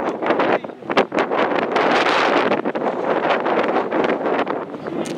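Wind blows hard outdoors, rumbling against the microphone.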